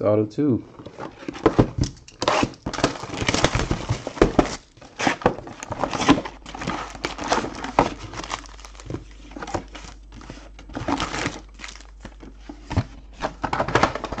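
Plastic wrapping crinkles and rustles as boxes are handled.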